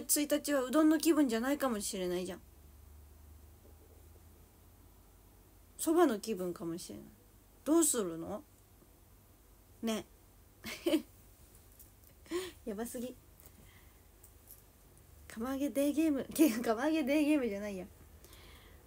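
A young woman talks close to a microphone in an animated voice, with pauses.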